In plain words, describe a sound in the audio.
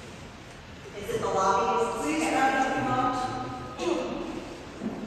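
An elderly woman speaks calmly into a microphone.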